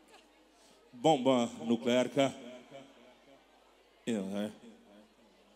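A man sings loudly into a microphone through loudspeakers.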